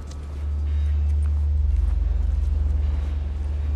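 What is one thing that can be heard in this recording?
Footsteps scuff softly on concrete.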